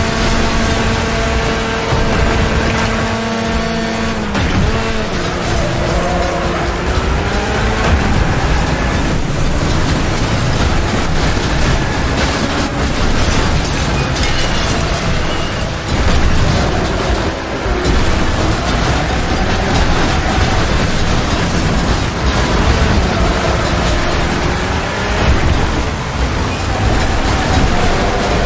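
A car engine revs and roars throughout.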